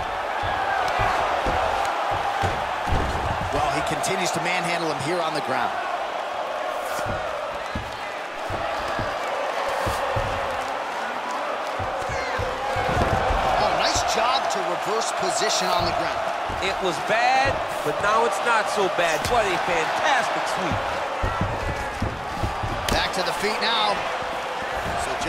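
A crowd roars and cheers steadily in a large arena.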